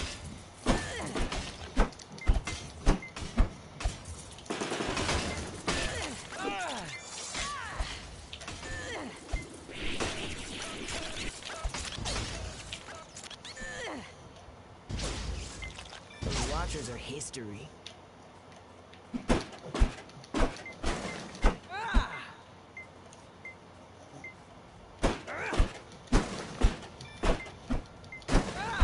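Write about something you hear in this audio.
Laser blasts zap and pop in quick bursts.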